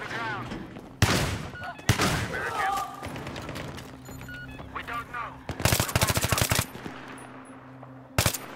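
A rifle fires shot after shot, in single shots and quick bursts.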